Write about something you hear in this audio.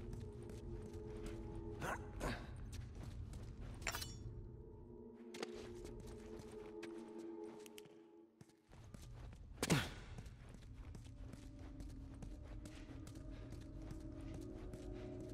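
Footsteps tread steadily on a hard floor.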